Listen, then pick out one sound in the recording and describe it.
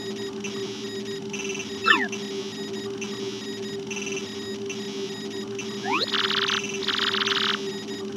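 A soft electronic hum with repeating beeps runs steadily.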